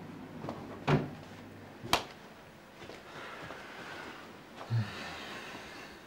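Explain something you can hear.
A woman's footsteps cross a room.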